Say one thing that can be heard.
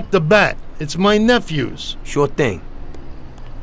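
A younger man answers, close by.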